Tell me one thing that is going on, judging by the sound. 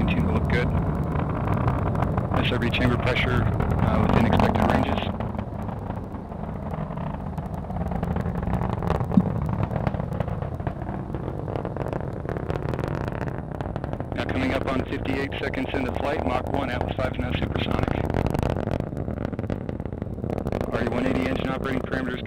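A rocket engine roars with a deep, steady rumble.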